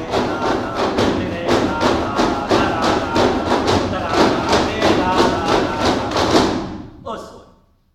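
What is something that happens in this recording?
A group of children sing together loudly.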